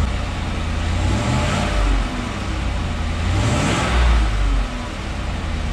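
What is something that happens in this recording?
A car engine revs up briefly twice, roaring through the exhaust.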